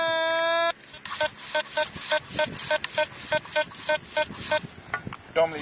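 A metal detector beeps rapidly in short pulses.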